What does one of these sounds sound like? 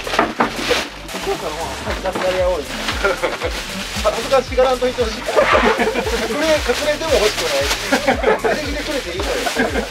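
Cardboard boxes thump as they are moved.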